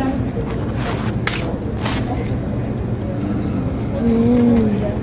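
Aluminium foil crackles as it is crumpled up.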